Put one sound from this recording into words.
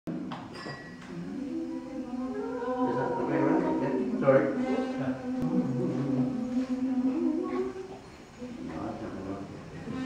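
A women's choir sings together in a large echoing room.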